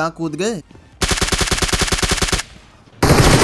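An automatic rifle fires a rapid burst of shots.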